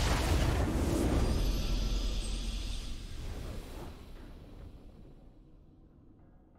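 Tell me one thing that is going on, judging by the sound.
A triumphant game fanfare rings out loudly and slowly fades away.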